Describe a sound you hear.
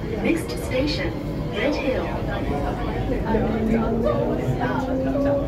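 Young women talk nearby.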